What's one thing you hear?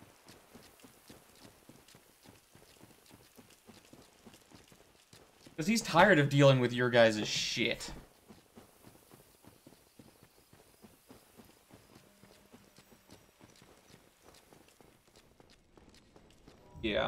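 Footsteps thud quickly on soft ground.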